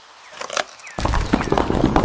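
Small pebbles clatter and rattle as they are dropped.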